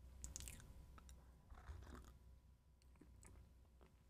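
A man slurps a drink.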